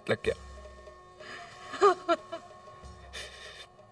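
A woman sobs.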